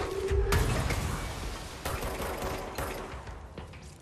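Debris clatters to the ground.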